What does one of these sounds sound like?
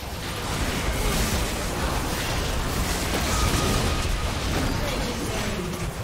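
Magic blasts crackle and boom in a chaotic video game battle.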